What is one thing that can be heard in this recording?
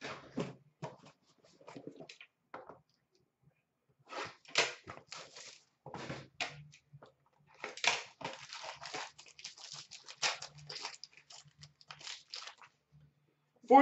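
Plastic card wrappers crinkle and rustle as hands handle them.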